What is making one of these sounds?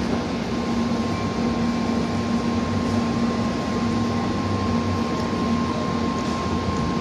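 A high-speed train rushes past with a loud, steady roar and hum.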